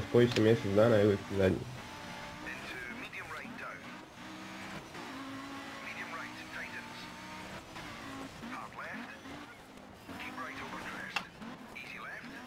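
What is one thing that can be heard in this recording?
A rally car engine roars and revs as the car speeds along.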